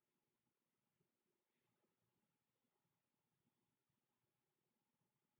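Clothing rustles and footsteps shuffle softly as a person stands up.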